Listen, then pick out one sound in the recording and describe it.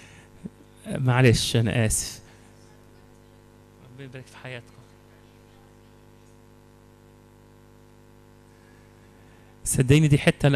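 A man speaks into a microphone in bursts, with pauses, in a reverberant hall.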